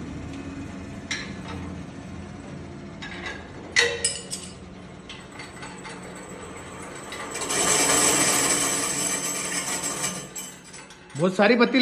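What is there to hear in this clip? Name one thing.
A grinding machine's motor hums steadily.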